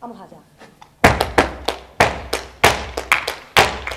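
A woman claps her hands sharply in rhythm.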